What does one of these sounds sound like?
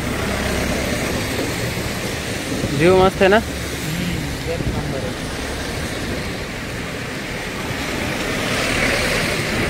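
A river rushes steadily far below.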